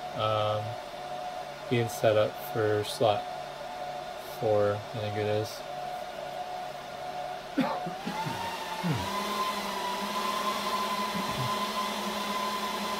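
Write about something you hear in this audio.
Computer fans hum steadily.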